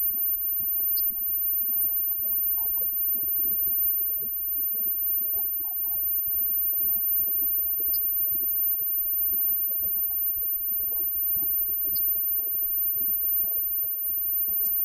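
A live rock band plays loudly with electric guitars.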